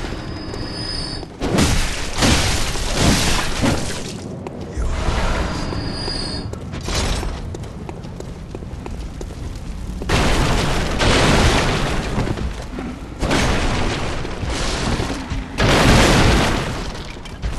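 A blade slashes and strikes with heavy thuds.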